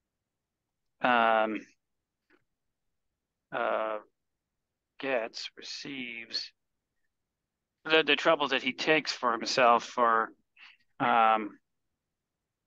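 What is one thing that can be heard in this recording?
A young man speaks calmly over an online call, in short bursts with pauses.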